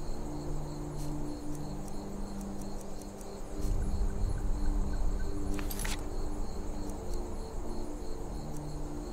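Soft interface clicks sound as menus open and close.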